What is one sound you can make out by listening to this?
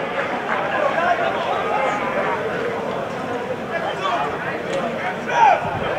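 Young men shout and cheer together outdoors.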